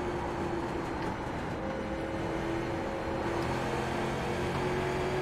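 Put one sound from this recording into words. A race car engine drones steadily at high speed.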